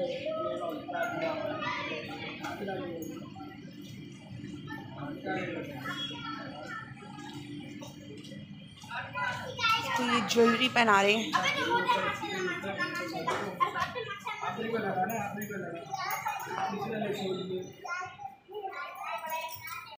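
Men talk with each other nearby.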